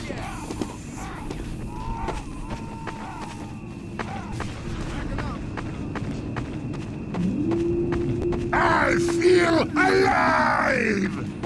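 Footsteps thud steadily on a dirt floor.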